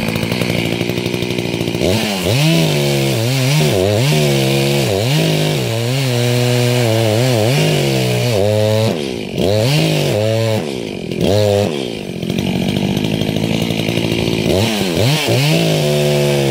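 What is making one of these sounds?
A chainsaw roars close by, revving up and down as it cuts into wood.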